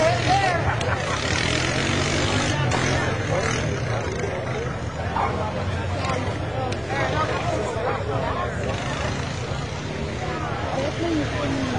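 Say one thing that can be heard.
An all-terrain vehicle engine rumbles and revs.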